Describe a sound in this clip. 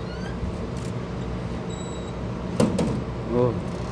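A metal door swings shut with a thud.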